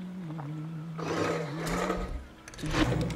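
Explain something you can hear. A metal lever slides and clunks into place.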